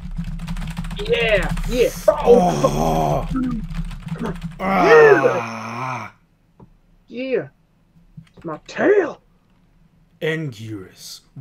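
A second young man talks and reacts over an online call.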